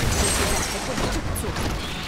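Lightning bolts crackle and zap.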